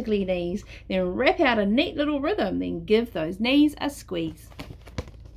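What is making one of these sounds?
A woman reads aloud close by, with a lively, sing-song voice.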